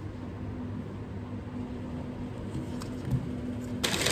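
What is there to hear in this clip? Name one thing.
A plastic container is set down on a table with a soft knock.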